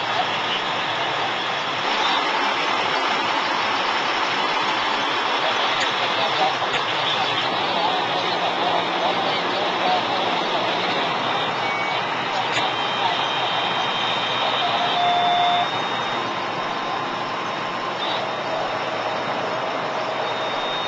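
Men talk among themselves in a crowd outdoors.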